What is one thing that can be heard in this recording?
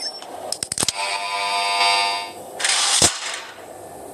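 An emergency alarm blares loudly in a video game.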